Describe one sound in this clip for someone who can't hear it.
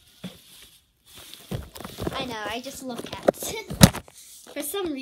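A phone rustles and knocks in a hand up close.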